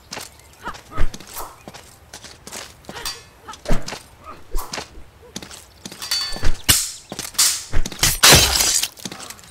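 Heavy blows thud against a body.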